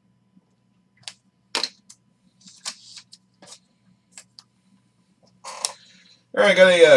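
Cardboard and card packs rustle and tap as hands handle them.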